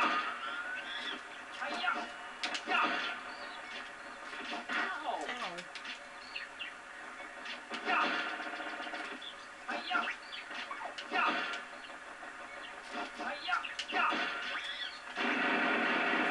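Sword swipes and hit effects ring out sharply from a video game.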